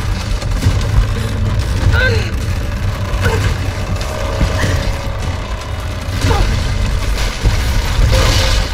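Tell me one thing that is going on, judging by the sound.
A low storm wind rumbles steadily.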